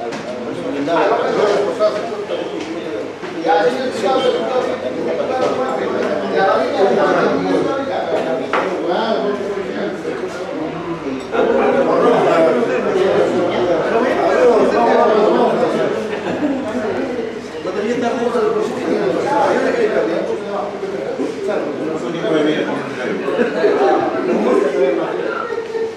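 Glasses and cutlery clink now and then.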